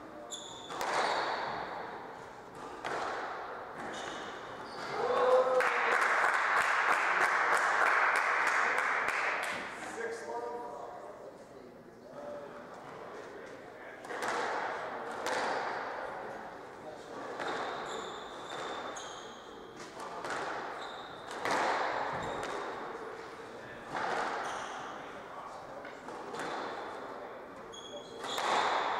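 A squash ball smacks sharply against walls and rackets in a fast, echoing rally.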